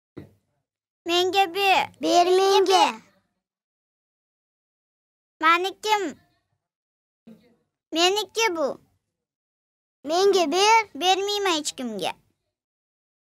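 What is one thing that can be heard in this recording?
A young girl speaks in short, lively bursts nearby.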